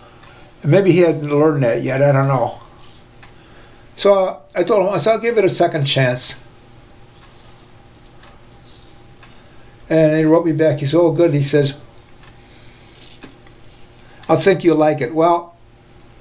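A razor scrapes over stubble.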